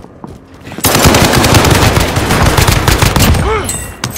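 Gunshots ring out from a rifle.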